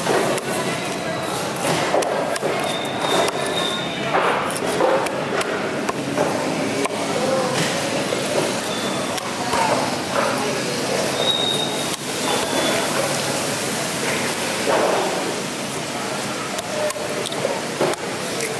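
A heavy knife chops and thuds through fish on a hard block.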